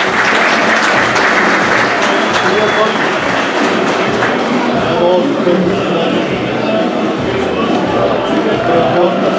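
A crowd of fans cheers and chants across a large open stadium.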